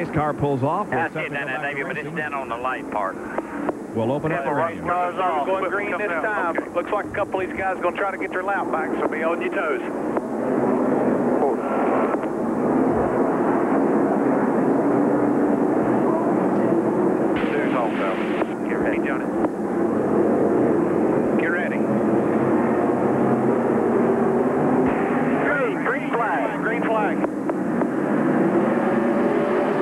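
A pack of race car engines roars steadily.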